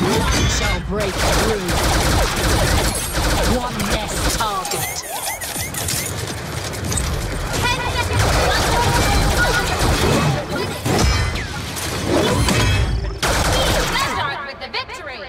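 Blasters fire in rapid bursts with loud zaps.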